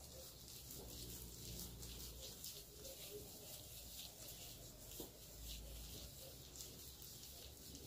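Wet hair squelches and rustles as hands rub and twist it.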